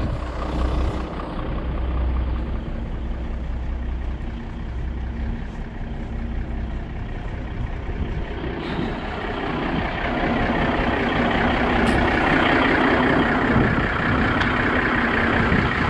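A heavy truck engine rumbles steadily close by.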